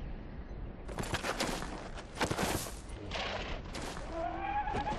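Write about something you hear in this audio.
A horse's hooves thud slowly on the ground.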